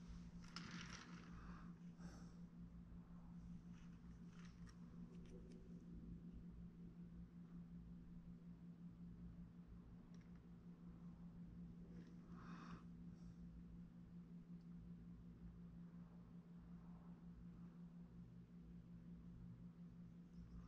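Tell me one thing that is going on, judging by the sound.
A small tool scrapes softly against clay.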